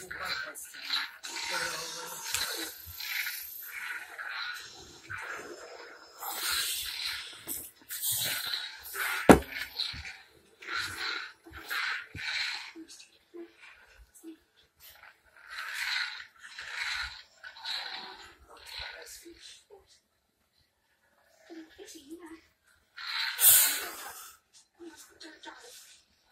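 A toy lightsaber hums and whooshes as it is swung.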